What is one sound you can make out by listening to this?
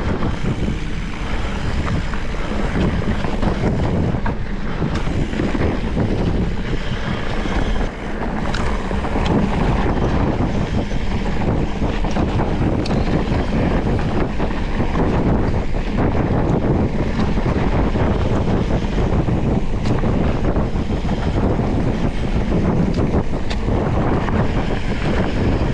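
A bicycle frame rattles and clanks over bumps.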